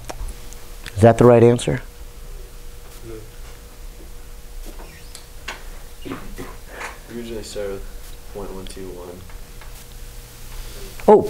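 A man speaks calmly to a room, heard from a distance.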